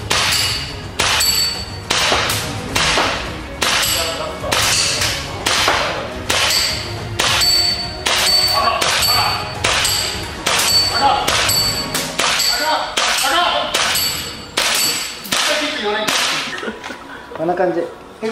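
Airsoft pellets hit a paper target one at a time, each with a sharp crack.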